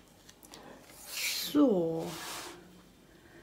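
A stiff canvas sheet rustles as it is handled.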